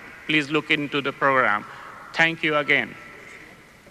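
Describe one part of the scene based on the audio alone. A man speaks steadily through a microphone, echoing in a large hall.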